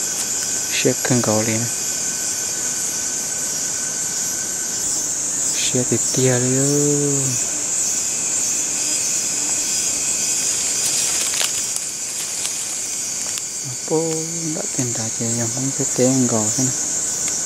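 A bird calls from the trees nearby.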